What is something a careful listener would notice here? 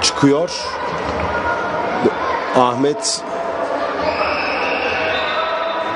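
Sneakers squeak on a hard court in an echoing hall.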